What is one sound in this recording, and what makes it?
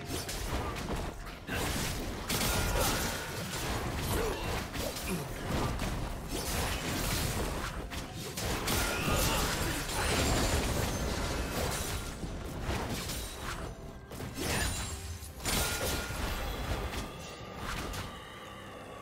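Spell blasts and weapon strikes clash in a fast video game fight.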